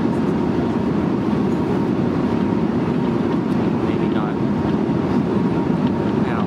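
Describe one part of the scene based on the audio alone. Aircraft engines drone steadily and loudly inside a cabin.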